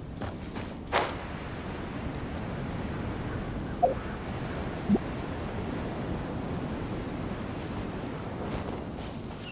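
Wind rushes past as a character glides through the air.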